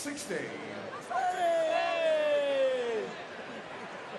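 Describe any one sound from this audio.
A crowd of men cheers and laughs loudly.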